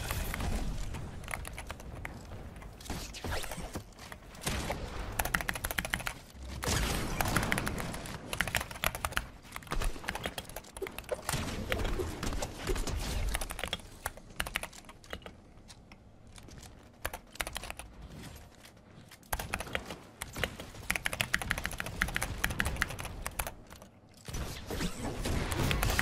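Wooden building pieces thud and clatter as they are placed.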